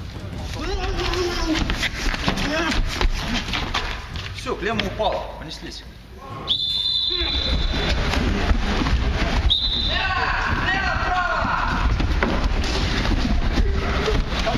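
Men scuffle, with feet shuffling on the floor.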